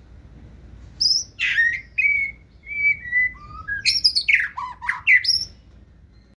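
A songbird sings close by in loud, varied whistling phrases.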